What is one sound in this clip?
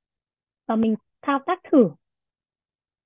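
A young woman speaks briefly through a microphone.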